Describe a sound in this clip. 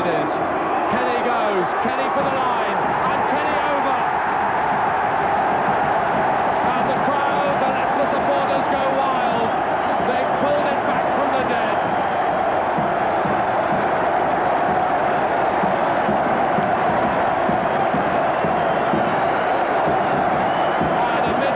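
A huge stadium crowd roars and cheers loudly.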